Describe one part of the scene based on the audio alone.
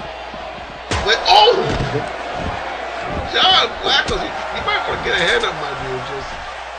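Bodies thud and slam during a wrestling match.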